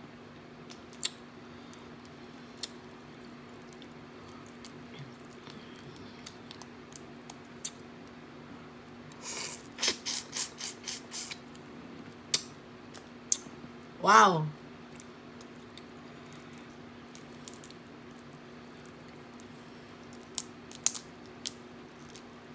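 Crawfish shells crack and snap between fingers.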